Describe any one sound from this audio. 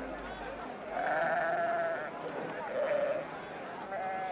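A flock of sheep bleats.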